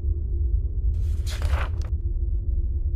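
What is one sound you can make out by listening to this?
A book page turns over with a quick papery rustle.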